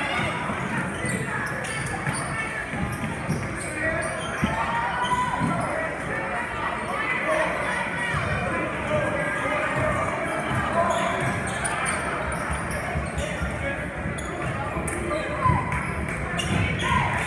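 A crowd murmurs and calls out throughout.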